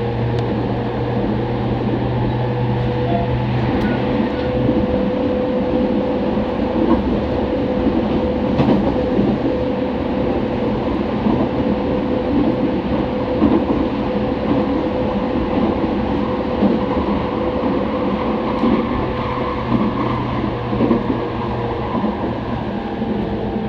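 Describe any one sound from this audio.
An electric commuter train runs at speed, heard from inside the carriage.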